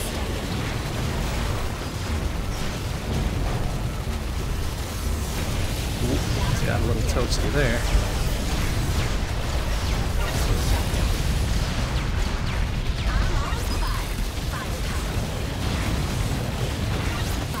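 Rapid electronic blasts and explosions crackle from a video game.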